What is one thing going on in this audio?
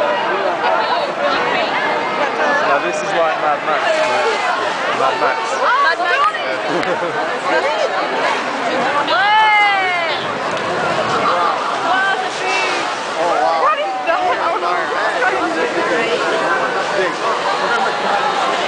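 A large crowd outdoors chatters and shouts excitedly close by.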